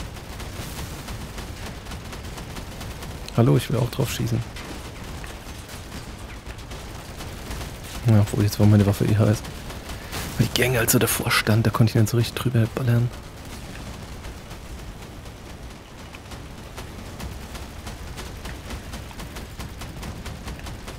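A heavy machine's engine hums low and steady.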